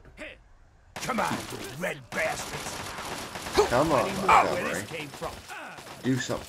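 A man shouts aggressively, heard close by.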